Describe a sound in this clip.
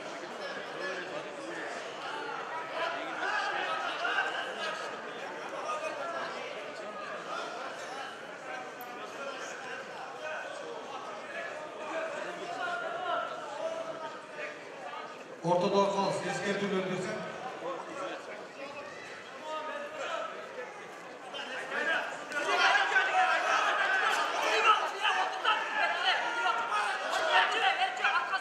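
A large crowd chatters and calls out in a big echoing hall.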